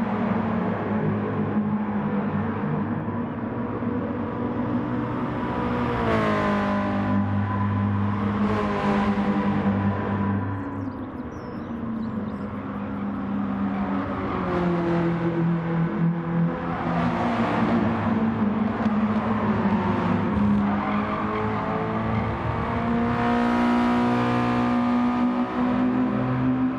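Racing car engines roar, revving up and down as they shift gears.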